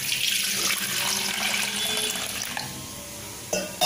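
Water pours into a metal pot with a splashing hiss.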